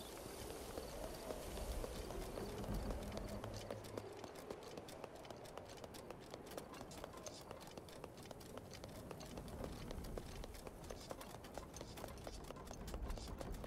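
Footsteps thud on wooden logs.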